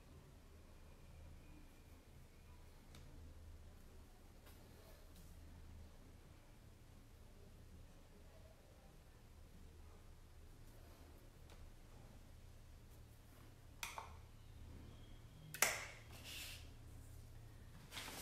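A paintbrush dabs softly on paper.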